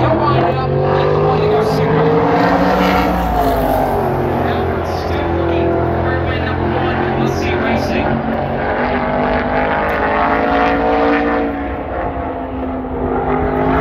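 Race car engines roar loudly as cars speed around a track.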